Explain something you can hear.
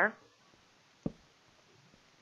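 A small wooden object is set down with a soft knock.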